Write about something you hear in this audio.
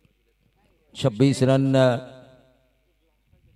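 A man commentates with animation through a microphone.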